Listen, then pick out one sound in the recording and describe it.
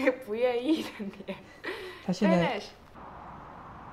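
A young woman talks cheerfully and laughs close to the microphone.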